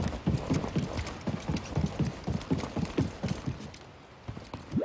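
Quick footsteps run on a metal floor.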